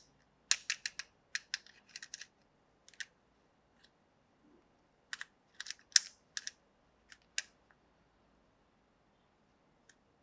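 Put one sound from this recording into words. Plastic toy teeth click and clack as fingers press and pull them.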